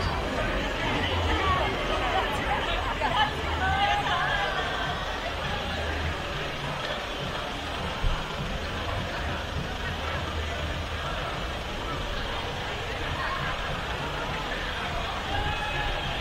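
Voices of a crowd chatter outdoors at a distance.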